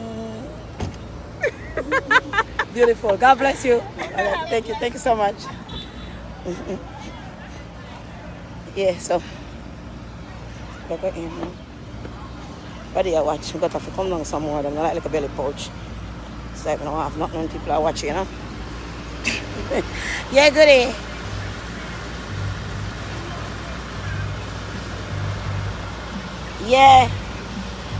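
A woman talks with animation close to a phone's microphone, outdoors.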